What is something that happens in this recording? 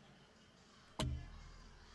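A menu selection chime sounds sharply.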